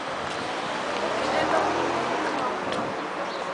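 A young girl speaks.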